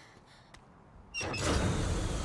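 A lever clanks as it is pulled.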